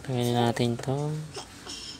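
A plastic tool scrapes against the edge of a phone.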